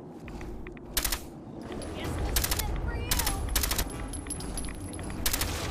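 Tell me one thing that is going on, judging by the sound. A heavy gun fires loud booming shots.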